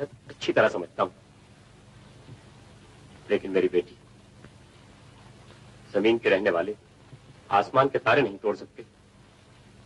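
A man speaks quietly and earnestly, close by.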